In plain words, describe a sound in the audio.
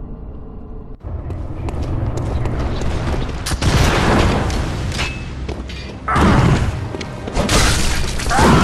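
Blades slash and clang in a fight.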